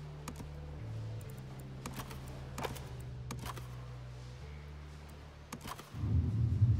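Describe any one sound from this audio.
Menu buttons click sharply a few times.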